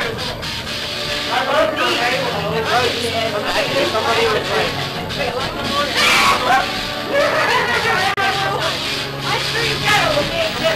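Several young people talk and shout excitedly close by.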